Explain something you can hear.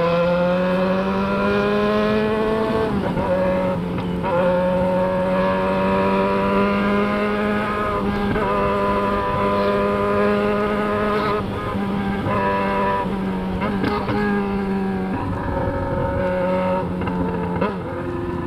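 Wind rushes past steadily.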